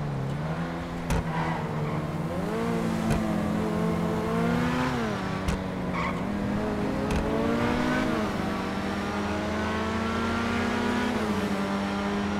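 A sports car engine roars steadily, its pitch rising and falling as the gears change.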